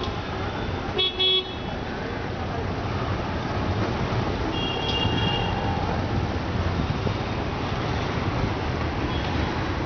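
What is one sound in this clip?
Auto rickshaw engines putter past.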